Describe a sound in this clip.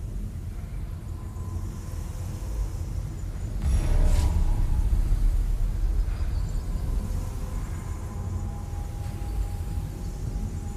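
A metal lift cage rumbles steadily as it moves.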